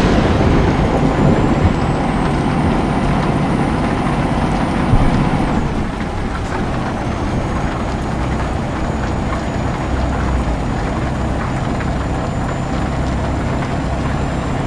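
Windshield wipers sweep back and forth.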